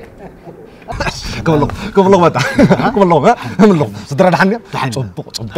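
A man laughs heartily nearby.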